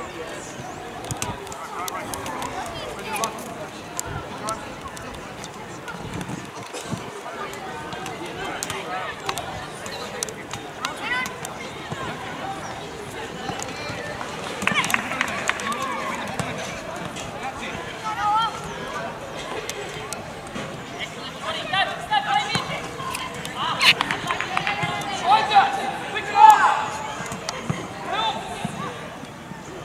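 Young players shout and call out to each other on an open outdoor field.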